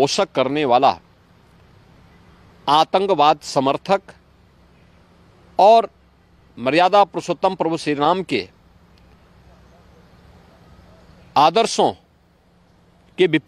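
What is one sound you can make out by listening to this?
A middle-aged man speaks firmly into a close microphone, with pauses between phrases.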